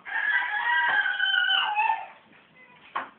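A kitten mews loudly.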